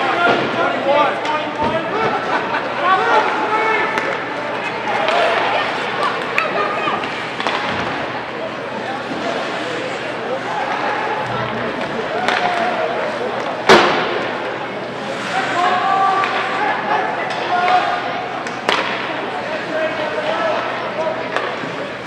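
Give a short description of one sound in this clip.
Hockey skates scrape on ice.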